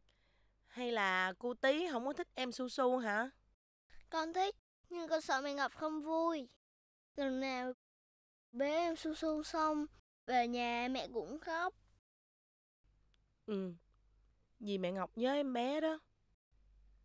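A woman speaks with animation close by.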